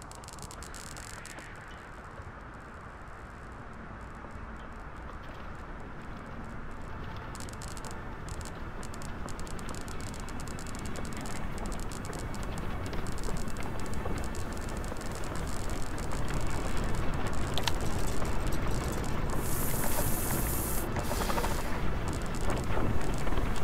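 Strong wind blows steadily, growing louder.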